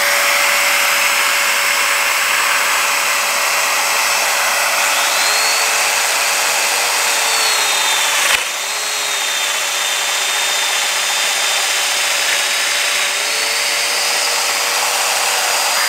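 A power tool motor hums and whines steadily.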